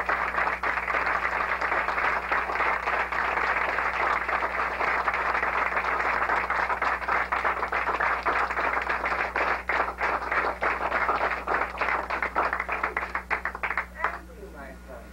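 A crowd claps and cheers loudly in a room.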